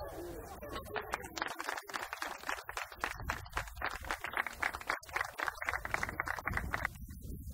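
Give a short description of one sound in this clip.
A small crowd claps and applauds outdoors.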